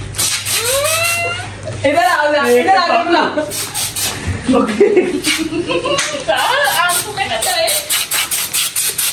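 Young men laugh and shout nearby.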